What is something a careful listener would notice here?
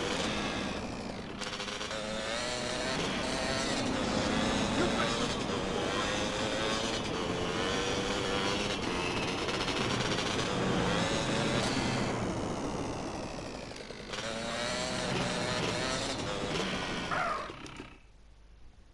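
A motorbike engine revs and drones as it rides.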